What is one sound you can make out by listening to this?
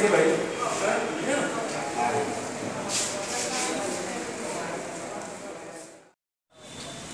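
Men talk among themselves nearby outdoors.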